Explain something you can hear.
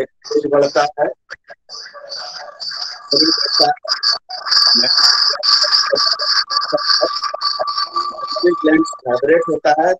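A middle-aged man speaks steadily through an online call.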